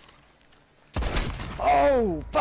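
A rifle shot cracks loudly nearby.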